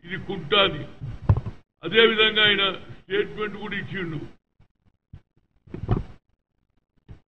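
An elderly man speaks emphatically into a microphone, close by.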